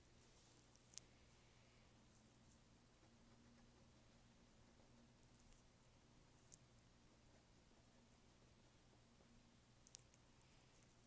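A pencil taps lightly against paper.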